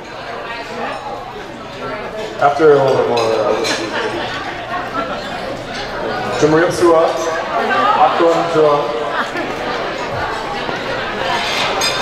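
A young man speaks into a microphone over loudspeakers in a large hall.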